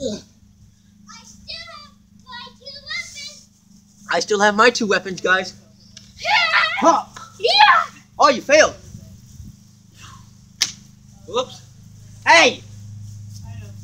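Young children shout and squeal nearby.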